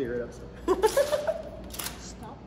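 A woman speaks and laughs close by.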